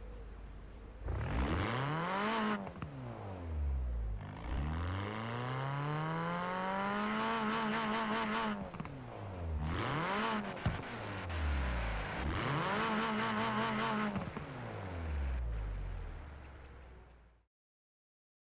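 A car engine revs hard, rising and falling in pitch as the gears change.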